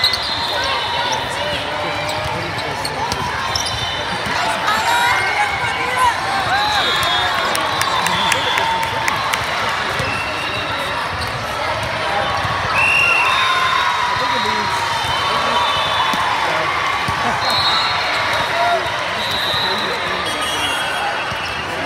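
A volleyball is struck with a thud.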